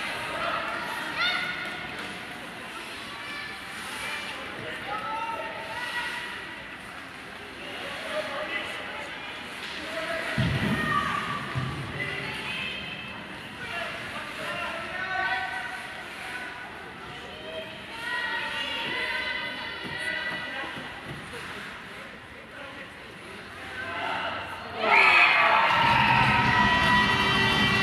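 Adults and children chatter and call out in a large echoing arena.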